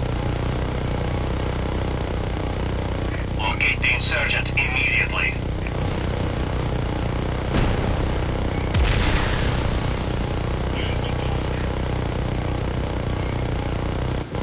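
A heavy machine gun fires in long, rapid bursts.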